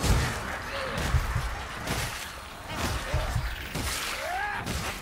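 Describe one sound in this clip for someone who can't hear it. Weapon blows thud and slash into a swarm of rat creatures.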